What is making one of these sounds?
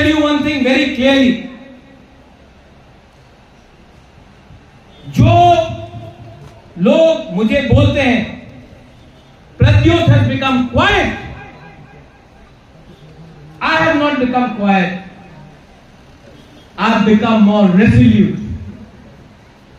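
A man speaks forcefully into a microphone over loudspeakers, outdoors, in short bursts with pauses.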